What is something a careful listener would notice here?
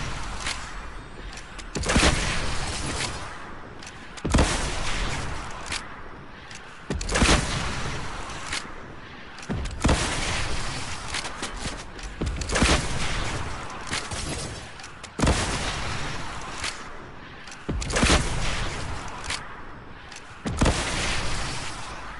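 A rocket launcher fires again and again with loud booming blasts.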